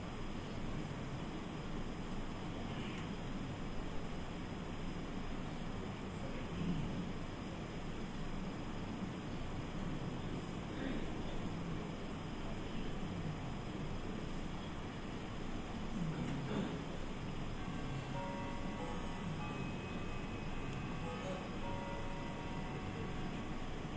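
Ceiling fans whir steadily in a large echoing hall.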